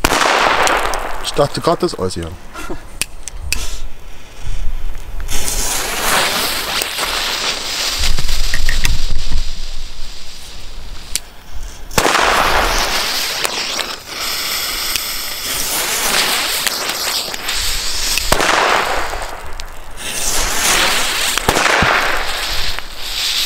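A firework on the ground hisses and crackles in bursts.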